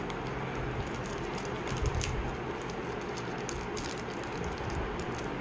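A plastic wrapper crinkles and rustles in someone's hands.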